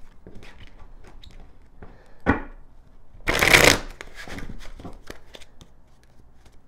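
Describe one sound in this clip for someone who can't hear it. Cards tap and slide against each other.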